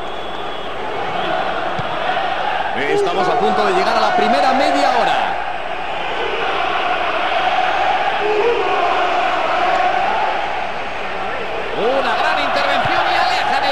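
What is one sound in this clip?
A large crowd roars and murmurs steadily.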